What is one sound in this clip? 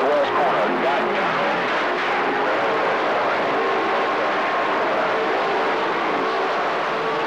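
Radio static hisses and crackles steadily from a loudspeaker.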